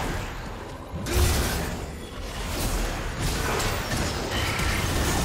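Game spell effects crackle and whoosh as characters fight.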